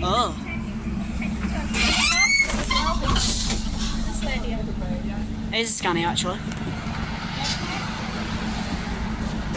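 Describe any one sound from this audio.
A bus engine idles with a steady low rumble close by.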